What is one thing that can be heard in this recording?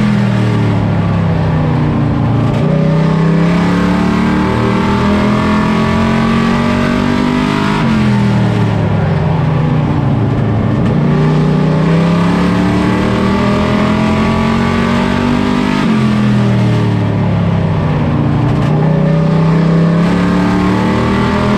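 A race car engine roars loudly up close, revving up and down through the gears.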